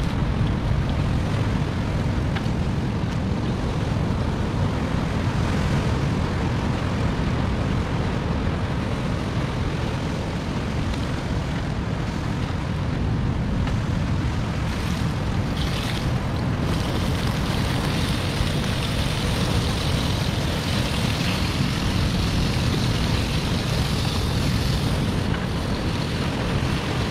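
Waves crash and surge against rocks.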